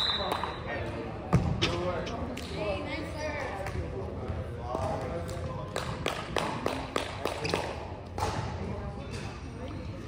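Volleyballs thud off hands and bounce on a wooden floor in a large echoing gym.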